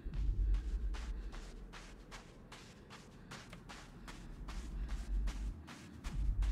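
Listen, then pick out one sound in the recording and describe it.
Footsteps run steadily over soft ground.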